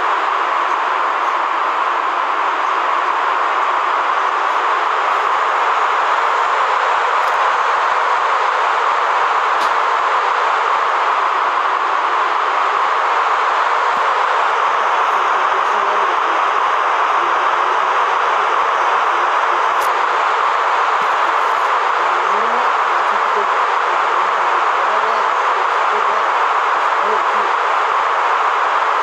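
A roller coaster car rumbles steadily along its track.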